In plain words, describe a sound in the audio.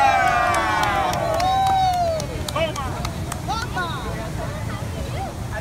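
A crowd of men and women cheers and whoops.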